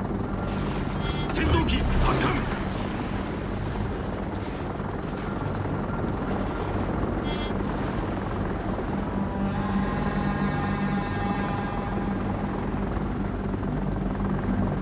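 Propeller plane engines drone steadily in a formation.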